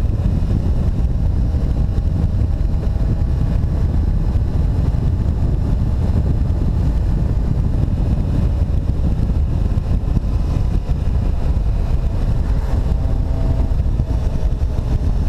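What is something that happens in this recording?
A Honda Hornet inline-four motorcycle engine hums while cruising.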